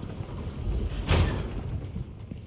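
A metal gate clanks open.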